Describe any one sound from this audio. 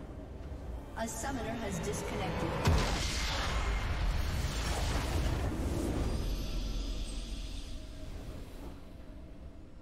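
A loud magical blast erupts and rumbles, then slowly dies away.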